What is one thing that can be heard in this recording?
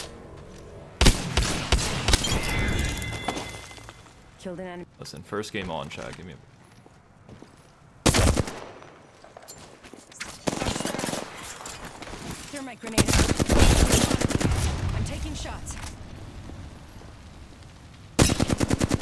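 A gun fires in rapid bursts, close by.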